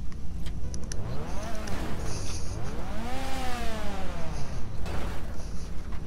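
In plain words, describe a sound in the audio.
A car engine revs up and down loudly, then fades.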